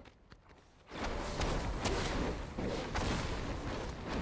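An explosion bursts and flames roar.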